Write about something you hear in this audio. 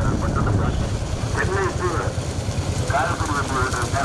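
A motorcycle rides past close by.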